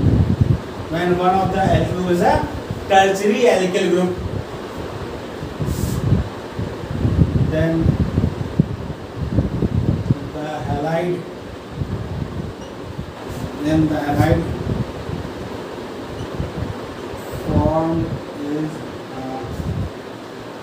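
A middle-aged man speaks in a lecturing tone, close by.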